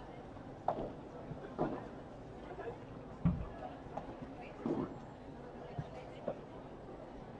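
Padel rackets hit a ball with sharp pops.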